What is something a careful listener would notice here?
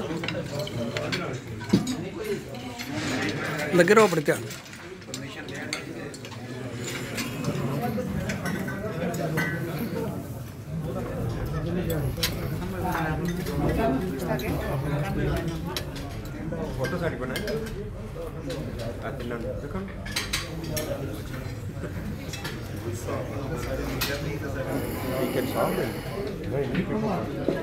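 Several men talk over one another in a busy room.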